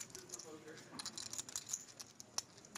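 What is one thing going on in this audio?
Poker chips click together softly.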